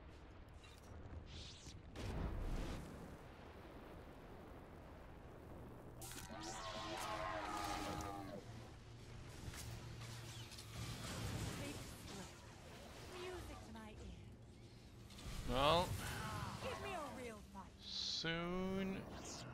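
A lightsaber hums and swings.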